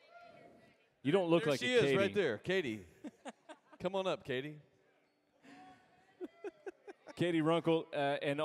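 A man sings loudly through a microphone in a large hall.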